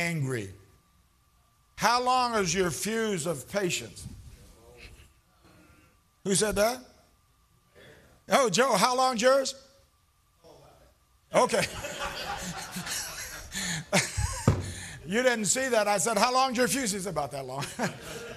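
An elderly man preaches with animation through a microphone, in a large echoing hall.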